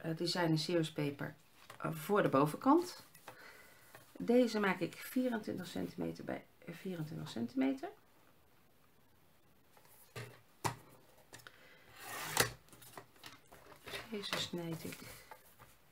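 Paper rustles and slides across a board.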